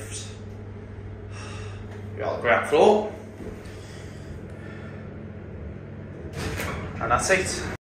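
An elevator motor hums steadily.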